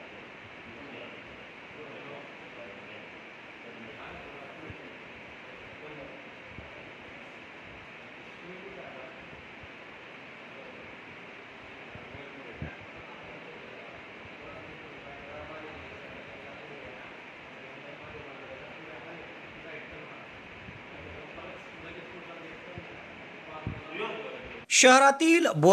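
Men talk quietly in a room.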